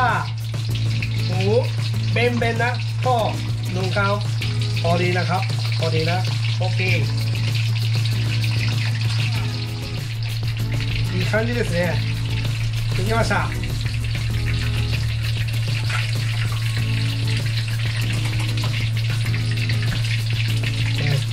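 Hot oil sizzles and bubbles steadily as food deep-fries.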